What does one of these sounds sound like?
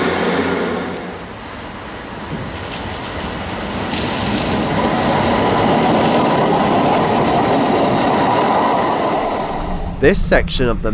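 An electric train rumbles along the tracks as it pulls into a station.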